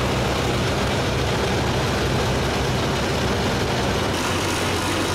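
Grain pours from a combine harvester's unloading auger into a trailer.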